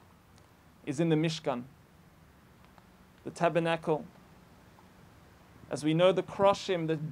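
A man speaks calmly in short phrases close by.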